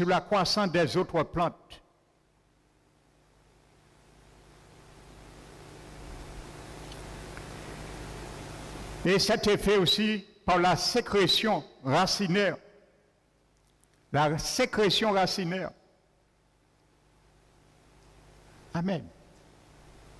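A man preaches with animation through a microphone and loudspeakers, pausing between phrases.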